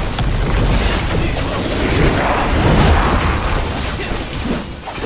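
Magic spells and weapon strikes crash and whoosh in a busy battle.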